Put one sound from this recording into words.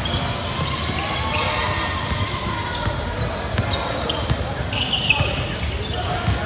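A basketball bounces on a hard court in a large echoing hall.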